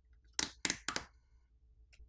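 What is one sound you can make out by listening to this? Small plastic parts of a phone click softly as fingers handle them.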